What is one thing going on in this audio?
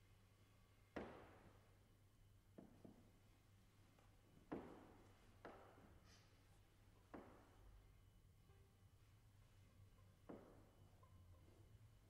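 A piano plays single chords that ring and fade.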